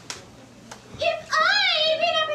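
A young woman sings loudly in a large room.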